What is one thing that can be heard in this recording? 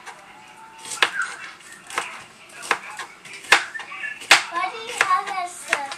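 A knife chops on a cutting board with sharp knocks.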